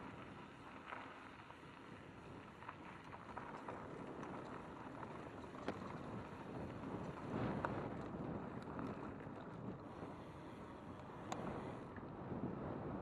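Bicycle tyres crunch and rattle over a gravel trail.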